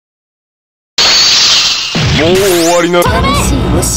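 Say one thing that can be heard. A loud blast whooshes out and rings.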